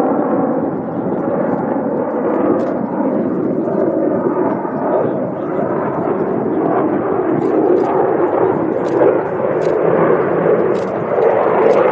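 Wind rumbles and buffets steadily across open ground.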